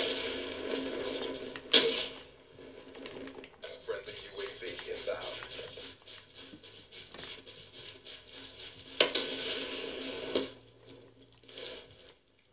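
Gunfire and explosions from a video game sound through a television speaker.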